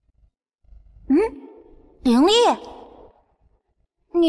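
A high, childlike voice asks a question in surprise.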